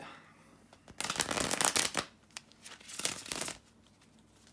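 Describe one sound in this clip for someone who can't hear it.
Playing cards riffle and snap as a deck is shuffled.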